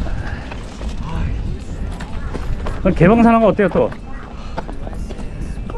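Footsteps scrape on rock.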